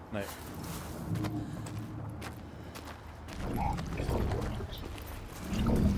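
Footsteps crunch slowly over rocky ground.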